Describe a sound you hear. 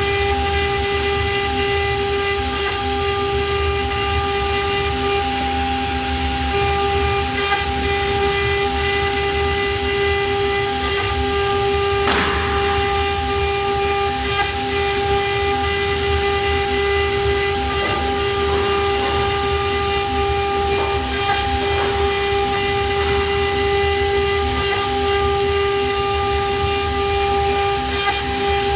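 A CNC router bit cuts into a wood sheet.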